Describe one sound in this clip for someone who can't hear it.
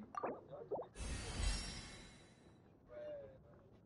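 A bright magical whoosh swells and fades.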